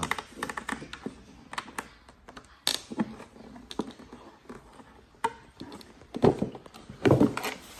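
Cardboard packaging rustles and taps as it is opened.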